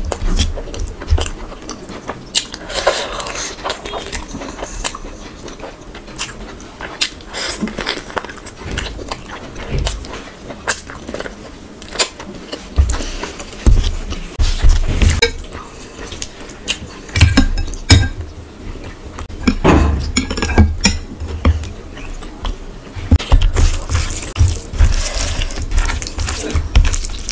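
A young woman chews food wetly and loudly close to a microphone.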